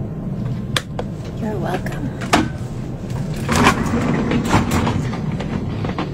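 A young woman speaks nearby.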